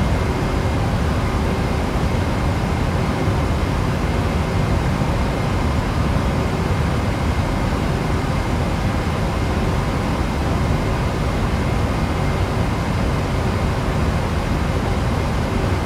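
Jet engines drone steadily with a low rumble.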